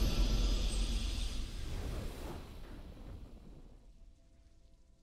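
A triumphant game fanfare swells and fades away.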